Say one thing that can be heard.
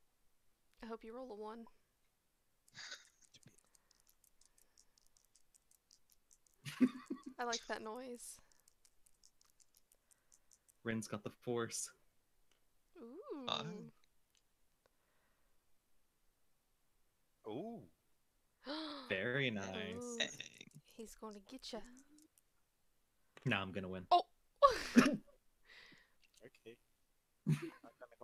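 A woman talks with animation into a close microphone, in short bursts.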